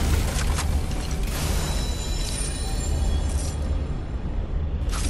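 A chest opens with a bright, chiming shimmer.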